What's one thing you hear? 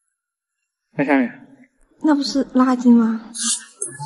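A young woman speaks close by in a questioning tone.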